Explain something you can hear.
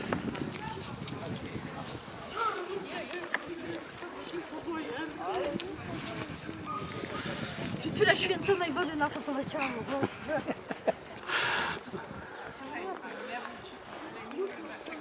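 Several women and men chat with animation nearby, outdoors.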